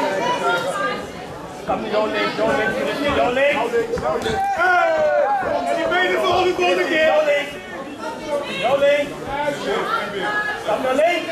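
A crowd shouts and cheers loudly in a large echoing hall.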